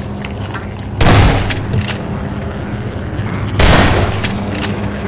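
A shotgun fires loudly.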